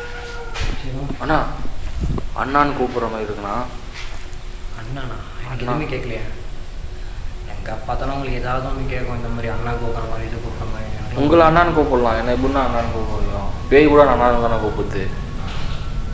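A young man talks close by in a hushed, tense voice.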